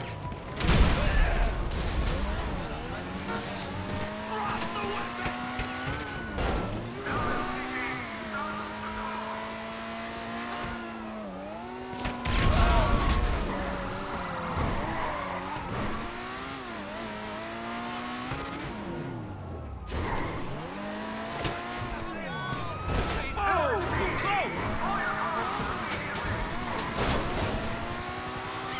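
A car engine hums and revs up and down as it drives.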